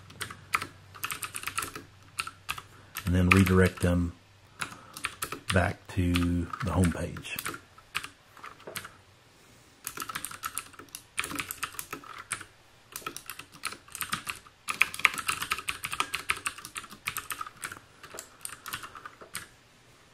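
Computer keys clatter in quick bursts of typing.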